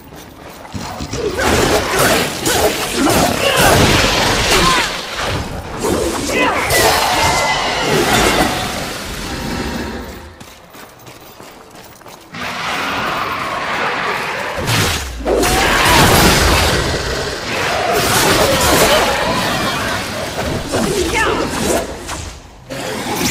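A whip lashes and cracks in a fight.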